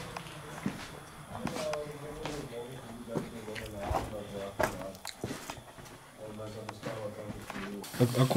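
Footsteps crunch on rubble.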